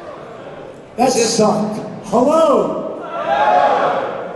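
A second man answers through a microphone.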